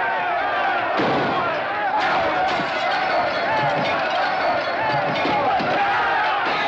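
Men bang and smash at a building's door and windows.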